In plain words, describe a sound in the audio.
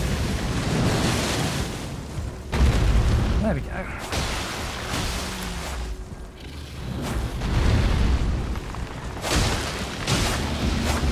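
Magical blasts whoosh and crackle.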